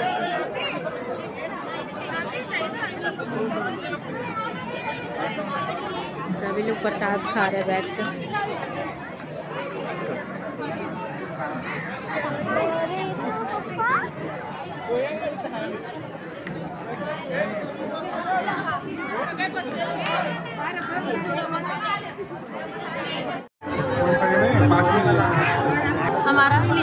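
A crowd of men and women chatters outdoors all around, close and at a distance.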